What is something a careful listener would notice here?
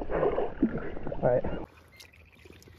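Water splashes as a fish thrashes in a net.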